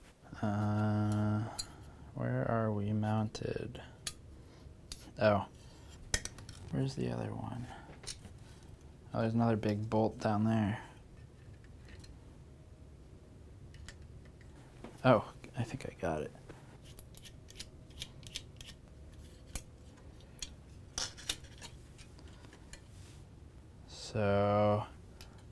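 A man speaks calmly and close to a clip-on microphone.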